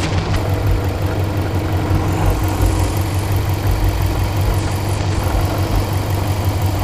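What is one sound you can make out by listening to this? A car engine idles close by with a steady, rough rumble.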